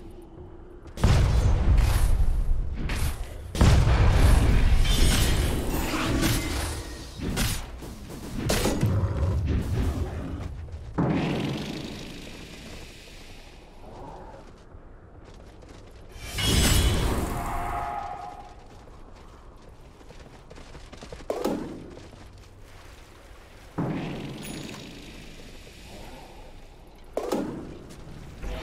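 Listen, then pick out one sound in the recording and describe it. Magic blasts and heavy impacts crash in a fantasy battle.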